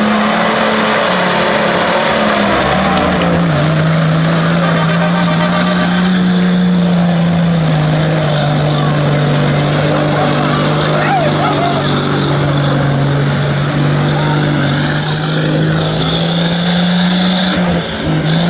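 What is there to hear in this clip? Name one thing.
An off-road engine roars loudly at high revs, straining through thick mud.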